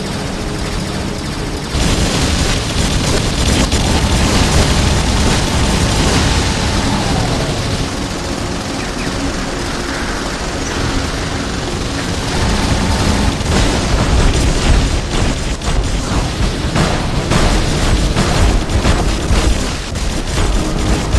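Heavy machine guns fire in rapid bursts.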